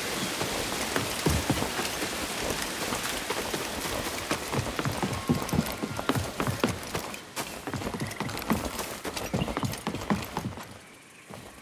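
Quick footsteps thud on wooden boards.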